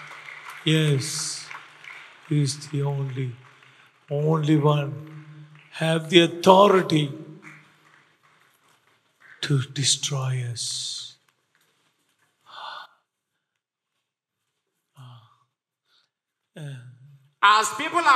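A middle-aged man speaks emotionally into a microphone up close.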